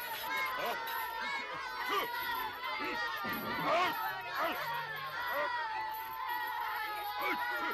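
A crowd of children shouts and laughs excitedly.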